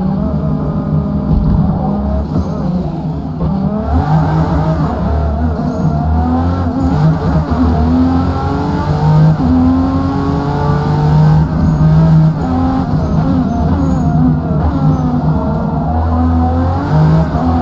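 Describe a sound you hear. Tyres squeal through tight corners.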